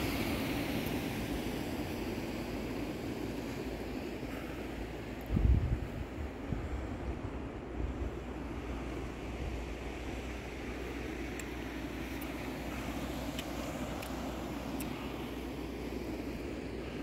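Wind blows across open ground outdoors.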